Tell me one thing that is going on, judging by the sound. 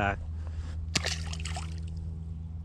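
Water splashes briefly close by.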